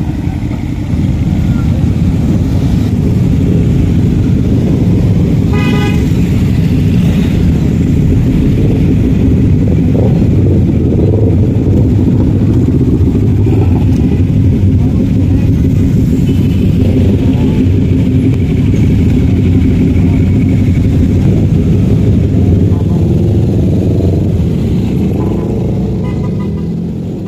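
Many motorcycle engines rumble and roar close by as they ride past.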